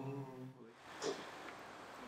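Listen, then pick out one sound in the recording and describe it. A man talks on a phone.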